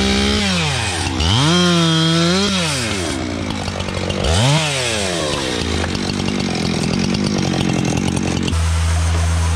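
A chainsaw revs up and down, cutting through a log.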